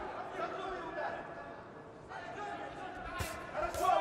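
A crowd cheers and murmurs in a large hall.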